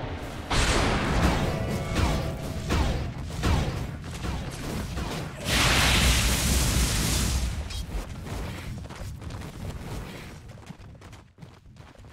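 Game spells crackle and boom during a fight.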